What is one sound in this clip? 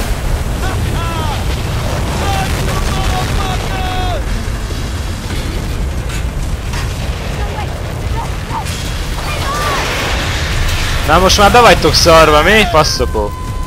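Concrete debris crashes and clatters down.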